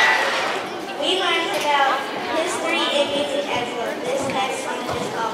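A young girl speaks into a microphone, heard through loudspeakers.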